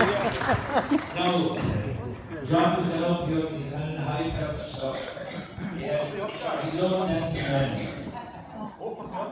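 A middle-aged woman talks and laughs nearby.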